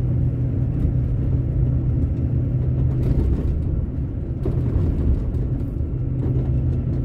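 A vehicle engine hums steadily from inside as it drives along a road.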